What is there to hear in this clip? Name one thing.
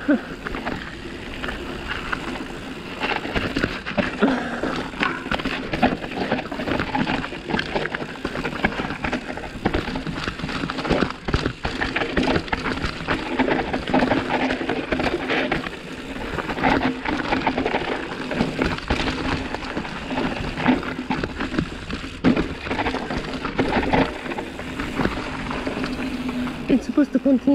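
A bicycle's freewheel buzzes steadily while coasting.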